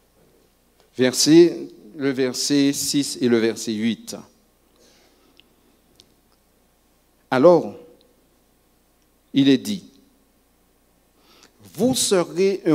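A man reads out slowly and solemnly through a microphone in a reverberant room.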